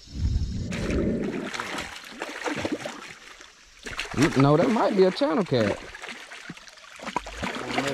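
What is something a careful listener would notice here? A fish thrashes and splashes in shallow water.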